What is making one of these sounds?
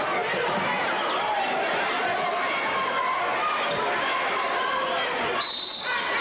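A large crowd cheers and chatters loudly in an echoing gym.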